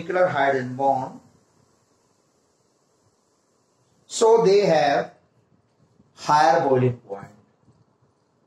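A young man speaks clearly and slowly nearby, explaining.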